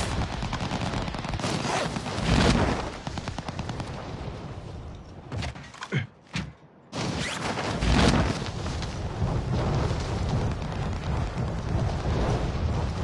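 A man talks into a headset microphone, close and casual.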